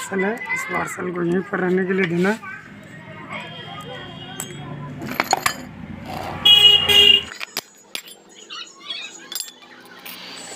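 Metal engine parts clink and scrape together.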